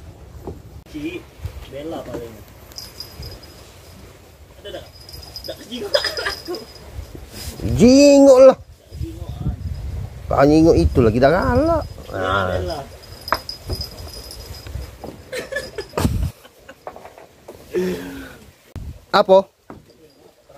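Men talk casually nearby, one voice rising loudly at times.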